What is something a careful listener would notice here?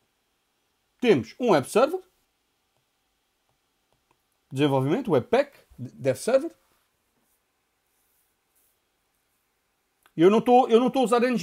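A man talks calmly into a close microphone, in short bursts with pauses.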